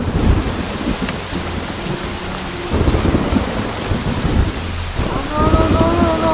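Rain pours down steadily.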